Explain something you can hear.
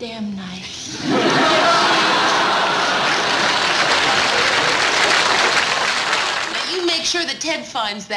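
Several people laugh loudly together.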